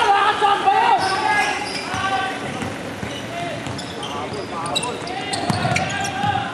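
Young men call out to each other across the gym.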